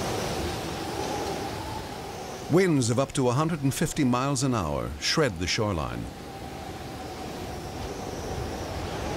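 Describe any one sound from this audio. Strong wind roars through palm fronds.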